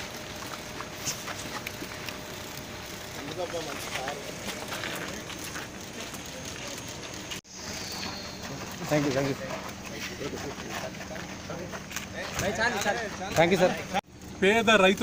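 Several men talk at once in a crowd outdoors.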